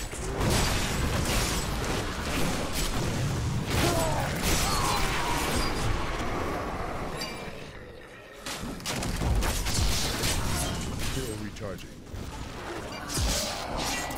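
Video game combat effects crash and thud.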